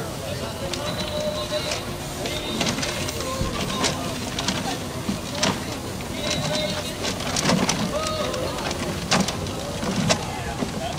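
Paper tickets tumble and rustle inside a turning plastic drum.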